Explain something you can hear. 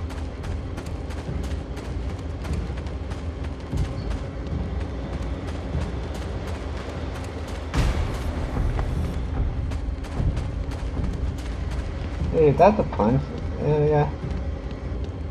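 Footsteps tap quickly and steadily on the ground.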